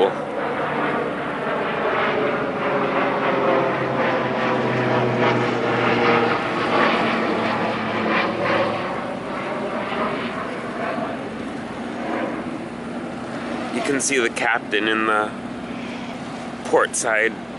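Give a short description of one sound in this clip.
A boat engine idles steadily nearby.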